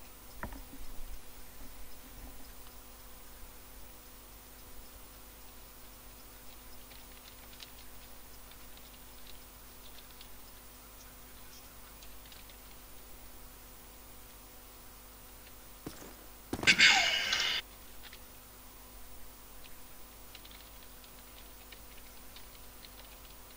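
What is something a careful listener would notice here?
Footsteps tread softly on sandy ground nearby.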